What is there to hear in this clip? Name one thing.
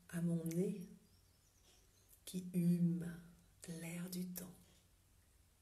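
A woman speaks warmly and cheerfully, close to a microphone, in short phrases.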